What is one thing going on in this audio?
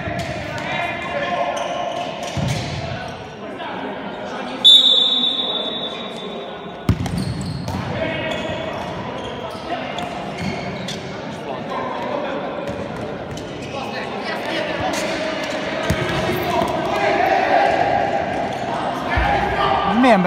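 Young men shout to each other in an echoing indoor hall.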